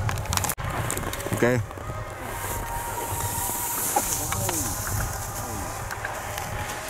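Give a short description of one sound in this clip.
Skis carve and scrape across hard snow.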